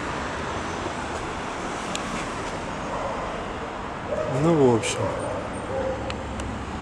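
Traffic hums steadily along a nearby city street, outdoors.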